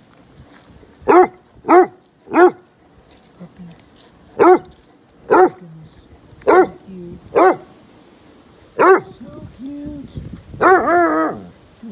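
A puppy yelps and whines in short high cries close by.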